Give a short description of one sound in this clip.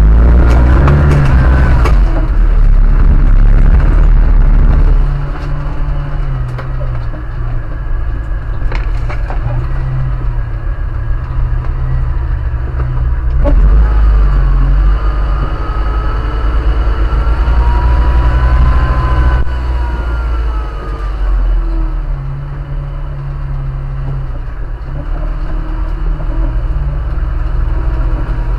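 A car engine rumbles steadily at low speed.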